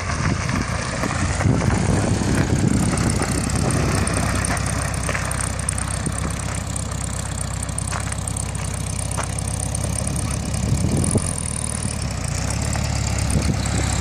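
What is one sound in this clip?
Tyres crunch slowly over gravel.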